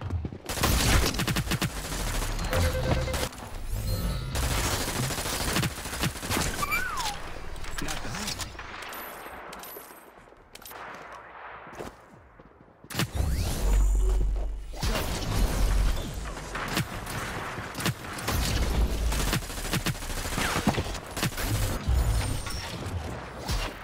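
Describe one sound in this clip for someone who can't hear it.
Game gunfire rattles in rapid bursts.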